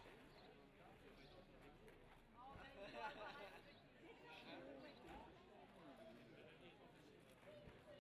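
Men talk nearby in a calm murmur.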